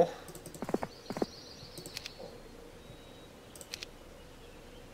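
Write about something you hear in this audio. Short game interface clicks sound.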